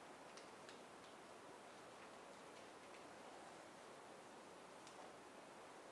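Paper rustles in a man's hand.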